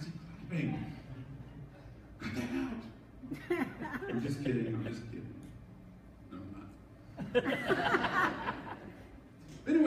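A man speaks calmly into a microphone in a reverberant hall.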